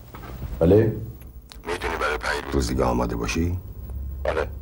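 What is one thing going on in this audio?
A middle-aged man speaks calmly on a phone.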